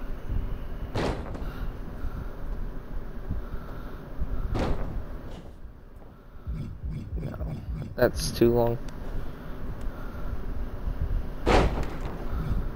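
A body slams onto a mat with a heavy thud.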